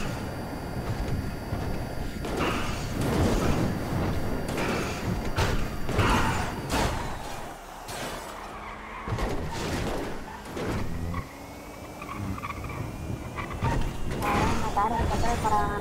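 A powerful car engine roars at high speed.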